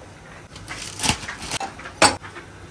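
A small metal pot clinks against a stove.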